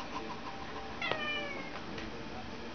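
A cat meows briefly close by.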